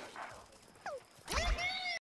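A blaster fires a fiery shot with a whoosh.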